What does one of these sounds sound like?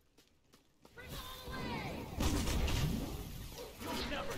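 Weapons clash and magic bursts in a fight.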